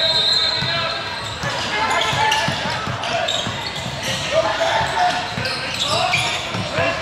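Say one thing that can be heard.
Young players and spectators shout and call out in an echoing hall.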